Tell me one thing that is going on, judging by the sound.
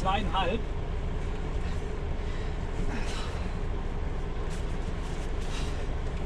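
A diesel engine idles with a low, steady rumble inside a cab.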